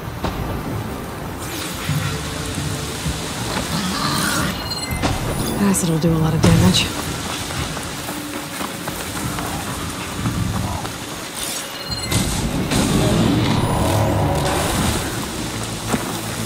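Footsteps rustle through dense foliage.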